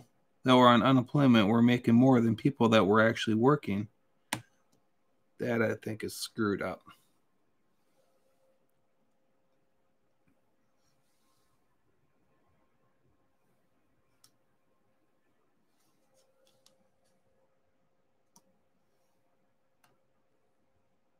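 Small plastic beads click softly as fingers press them into place.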